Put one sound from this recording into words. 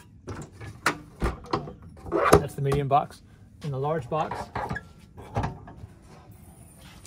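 A metal latch clicks open and shut.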